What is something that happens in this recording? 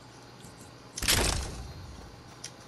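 A weapon is picked up with a sharp metallic rattle.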